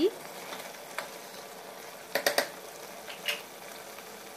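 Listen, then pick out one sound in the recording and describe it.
A wooden spoon knocks and scrapes against a metal pot.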